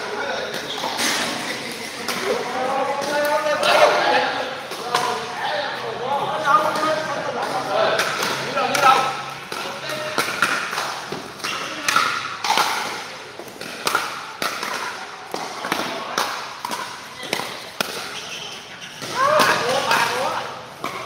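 Men talk and call out nearby in an echoing hall.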